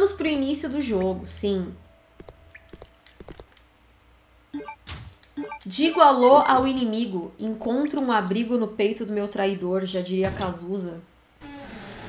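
A young woman talks with animation into a microphone close by.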